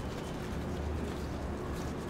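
Footsteps of a crowd shuffle along outdoors.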